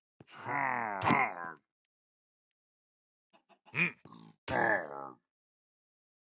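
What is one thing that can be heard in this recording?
A sword strikes a creature with sharp hits.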